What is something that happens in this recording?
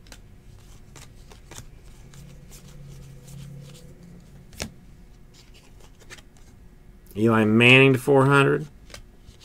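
Cards snap and flick softly as a hand shuffles through a stack.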